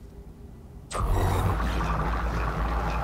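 A machine starts up with a loud, steady rumbling hum.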